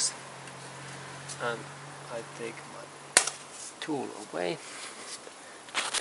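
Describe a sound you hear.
A hose fitting clicks as a gauge is unplugged.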